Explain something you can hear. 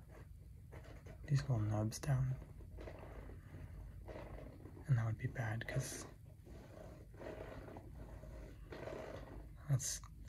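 Fingers scratch and rub over a knobbly rubber shoe sole close to the microphone.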